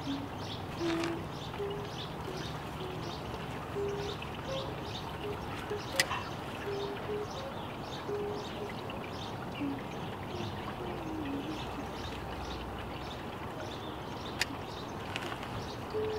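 Leaves and stems rustle softly as plants are handled.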